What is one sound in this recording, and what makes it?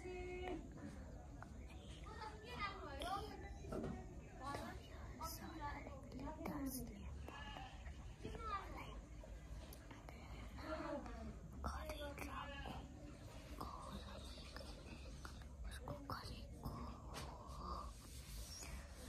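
A young girl talks softly and close up.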